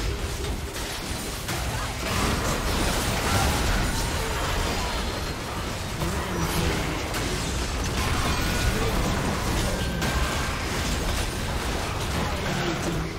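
Spell effects and weapon hits crackle and clash in a fierce fight.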